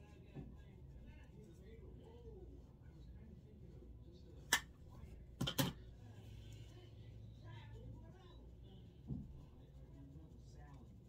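A makeup brush brushes softly against skin.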